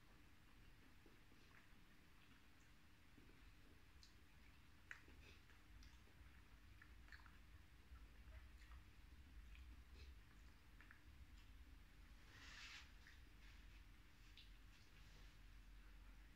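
A man chews and smacks his lips close up.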